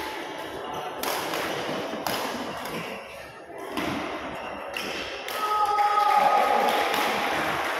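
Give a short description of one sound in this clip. Shuttlecocks are hit with sharp pops in a large echoing hall.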